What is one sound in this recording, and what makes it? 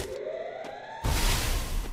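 A loud burst of hissing smoke erupts.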